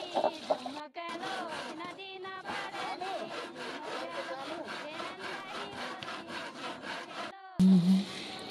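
A hand saw cuts back and forth through wood.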